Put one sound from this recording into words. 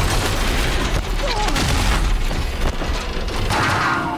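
A large mechanical beast stomps and grinds nearby.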